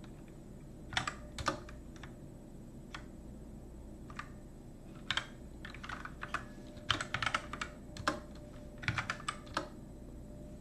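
Keyboard keys click in short bursts.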